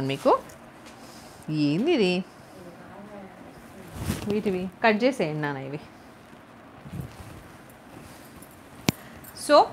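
Silk fabric rustles as a woman folds it.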